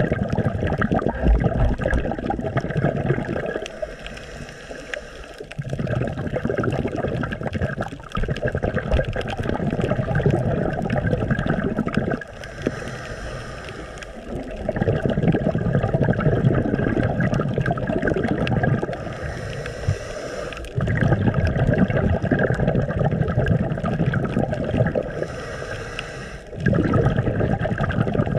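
Water rushes and bubbles in low, muffled surges, heard from underwater.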